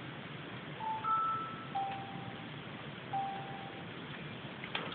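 Short electronic beeps sound as menu buttons are selected.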